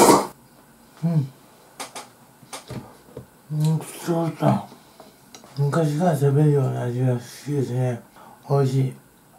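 A man speaks calmly and contentedly, close to a microphone.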